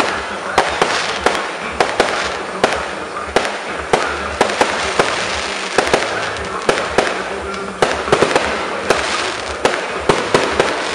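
Fireworks crackle and fizzle steadily.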